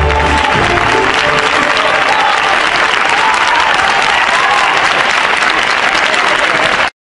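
A large audience applauds.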